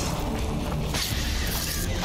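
A crackling burst of electricity flares up.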